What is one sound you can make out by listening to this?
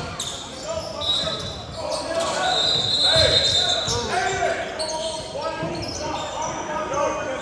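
Young players call out and shout in a large echoing gym.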